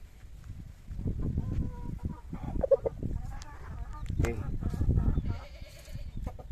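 Feathers rustle as a rooster is handled.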